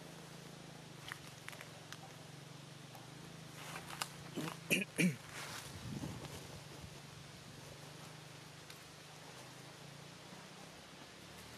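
A young monkey chews and crunches food.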